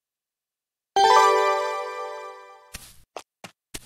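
A bright chime rings out and fades.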